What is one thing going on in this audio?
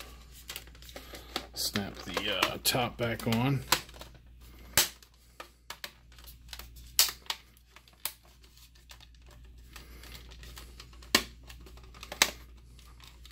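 Plastic casing clicks and snaps as hands pry it apart.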